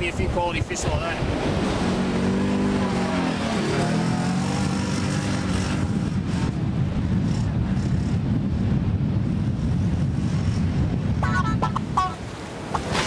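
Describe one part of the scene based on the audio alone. A quad bike engine drones as it drives away over sand.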